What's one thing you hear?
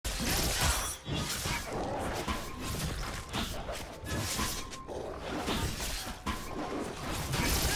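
Game fighting effects clash and crackle rapidly.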